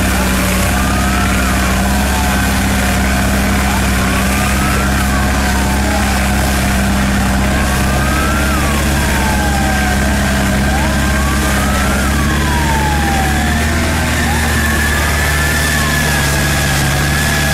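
A truck engine rumbles steadily close by.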